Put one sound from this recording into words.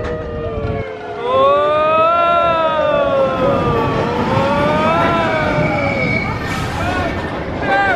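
Riders on a roller coaster scream with excitement.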